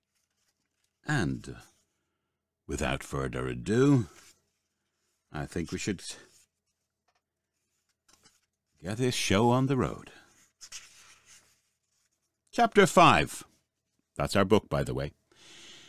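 A middle-aged man speaks calmly and closely into a microphone, in short bursts with pauses.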